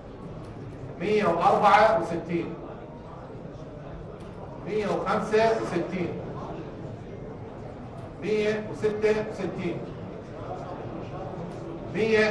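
A man announces loudly through a microphone in short bursts, with a slight echo.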